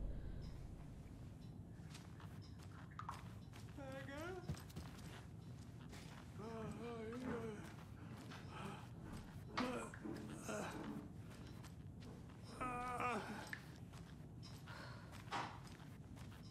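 A woman walks slowly across wooden floors.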